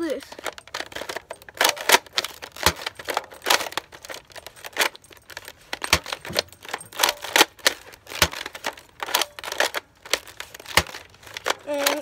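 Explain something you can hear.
A toy blaster clicks and rattles.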